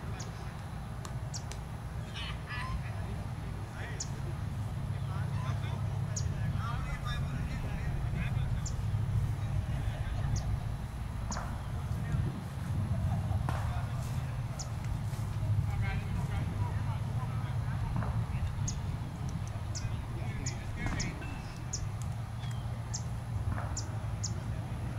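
Several men talk and call out to each other at a distance outdoors.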